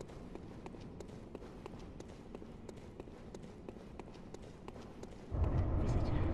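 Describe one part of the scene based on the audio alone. Footsteps tap steadily on stone in a large echoing hall.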